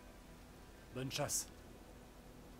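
A second man answers briefly and calmly.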